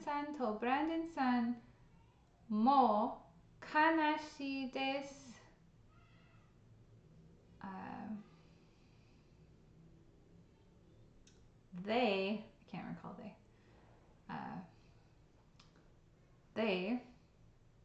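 A young woman speaks calmly and slowly into a close microphone, with pauses.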